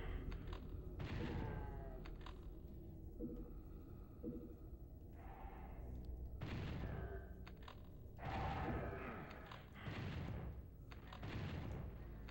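A shotgun fires in a game.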